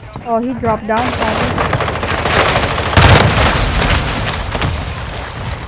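An explosion booms and roars nearby.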